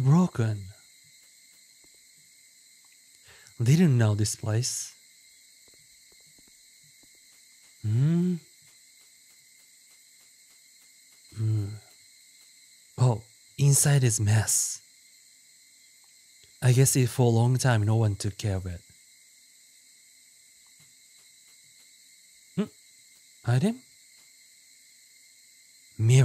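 A young man talks in short bursts into a close microphone, with animation.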